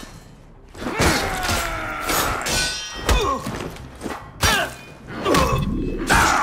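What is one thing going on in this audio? Blows land with heavy thuds.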